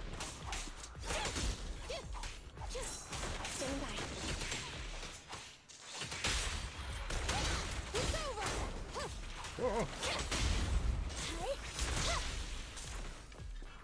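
Swords clash and slash with sharp whooshing strikes.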